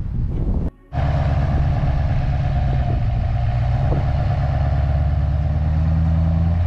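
A pickup truck engine idles with a deep, steady rumble.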